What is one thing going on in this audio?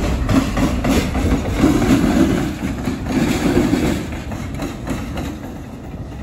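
A diesel locomotive rumbles past close by and fades away.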